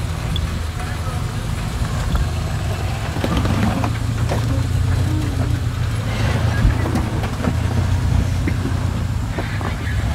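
An off-road truck engine rumbles low and steady as it crawls over rocks.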